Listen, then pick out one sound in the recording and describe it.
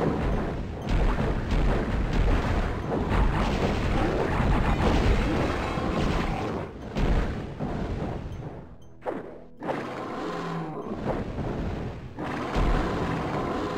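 Fireballs whoosh past.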